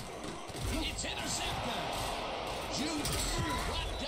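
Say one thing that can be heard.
Football players thud as they collide in a tackle.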